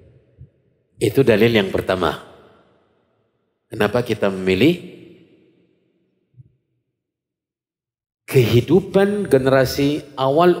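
A man speaks calmly into a microphone, in short phrases with pauses.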